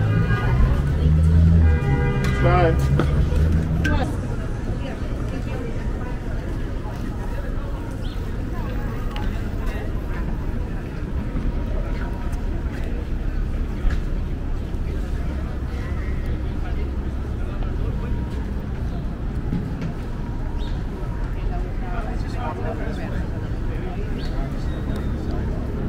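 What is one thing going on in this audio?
Passersby talk faintly nearby.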